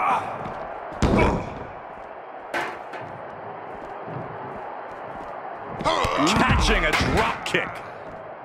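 Heavy thuds of bodies slamming onto a hard floor.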